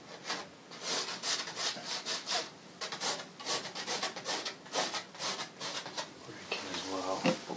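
Chalk scratches and rasps across a canvas in quick strokes.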